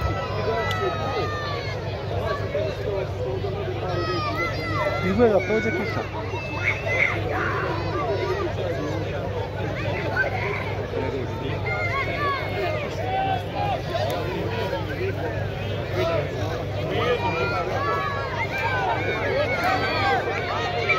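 A large crowd of men shouts and chatters outdoors.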